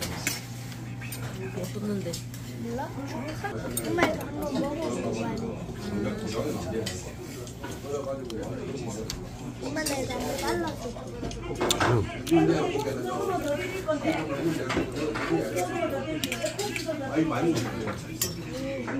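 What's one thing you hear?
Young people chat casually close by.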